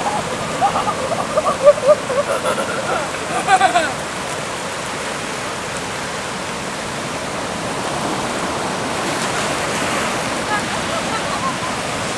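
Feet splash through shallow water.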